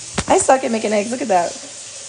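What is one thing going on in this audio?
Eggs sizzle in a frying pan.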